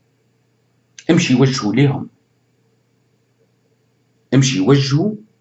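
A man speaks calmly and close into a microphone, in short bursts.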